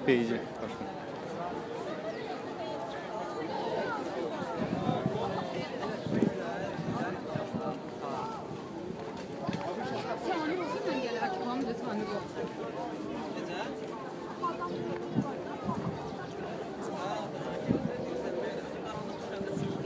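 A crowd of young men and women chatters close by outdoors.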